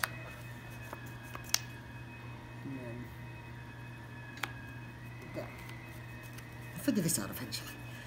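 Playing cards are tapped and slid onto a soft table mat.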